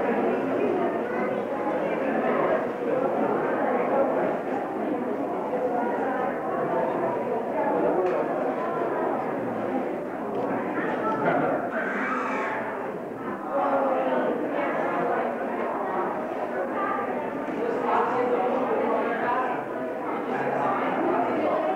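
Young people talk with each other close by, in a room full of chatter.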